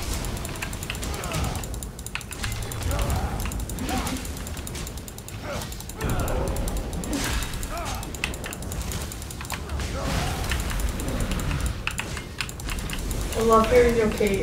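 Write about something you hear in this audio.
Blades clash and strike.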